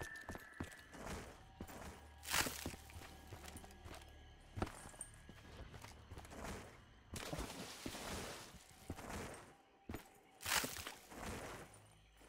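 Footsteps tread over wet ground.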